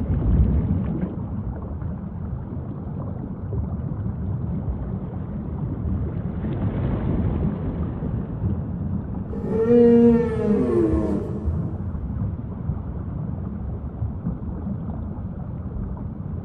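Water splashes and churns as a whale dives beneath the surface.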